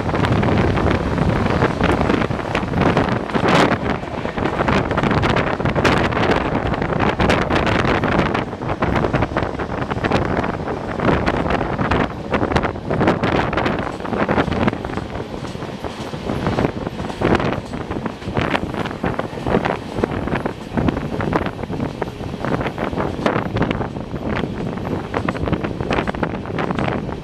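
An express passenger train rushes along at speed, heard from an open doorway.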